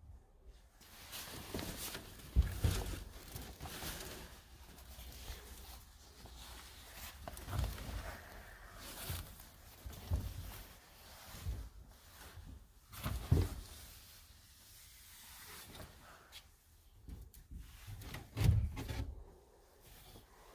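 Clothes rustle and brush together as they are pushed along a rail.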